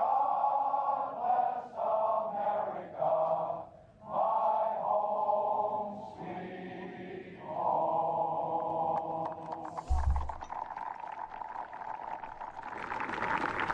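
A large crowd sings a slow song together, heard through a loudspeaker.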